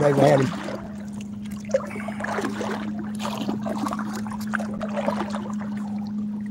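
Water laps gently against a boat's hull.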